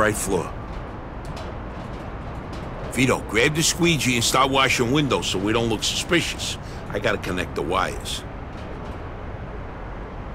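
Footsteps clank on a metal platform.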